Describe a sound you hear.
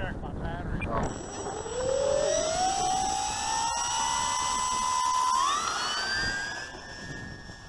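An electric motor whines, rising in pitch as it speeds up.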